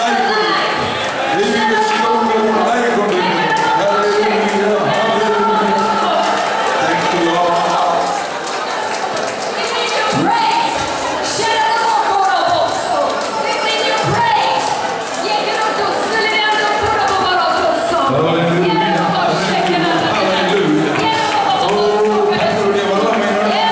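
A large crowd of men and women pray aloud all at once in an echoing hall.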